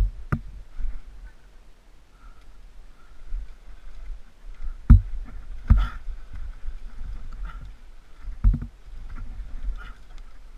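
A mountain bike rattles and bumps over a rough forest trail.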